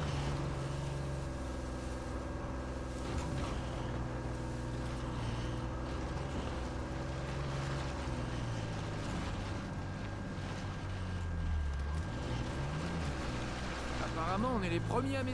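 A jeep engine rumbles steadily, revving up and down as the vehicle climbs over rough ground.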